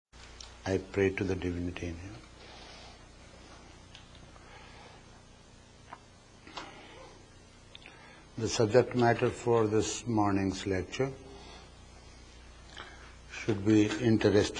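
An elderly man speaks calmly and slowly through a microphone, with long pauses.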